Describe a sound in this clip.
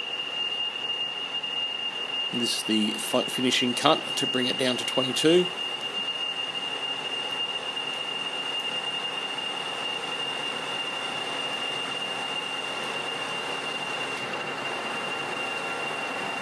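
A cutting tool scrapes and whines against turning metal.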